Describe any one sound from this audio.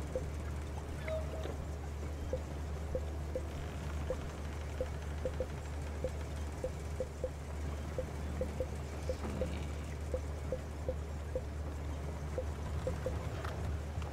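Soft game menu blips tick quickly as a selection moves from item to item.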